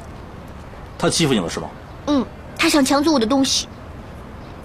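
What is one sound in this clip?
A young woman speaks in a worried, questioning voice.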